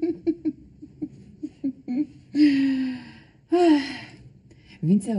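A young woman laughs softly.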